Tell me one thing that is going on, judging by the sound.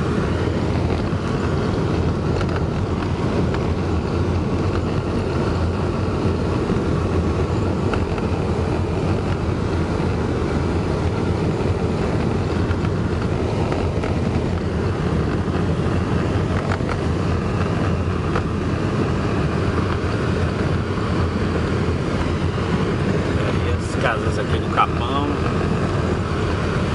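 Tyres crunch and rattle over a bumpy dirt road.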